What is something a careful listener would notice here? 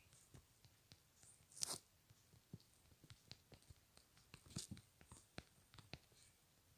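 Fingers tap quickly on a phone touchscreen.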